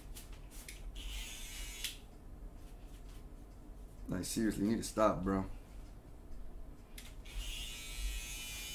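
Electric hair clippers buzz in short bursts.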